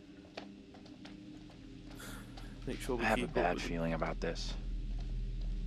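Footsteps tread slowly on pavement.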